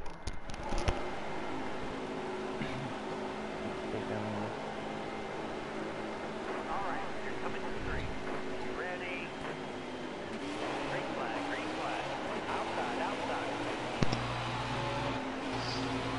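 Racing car engines drone steadily at high revs.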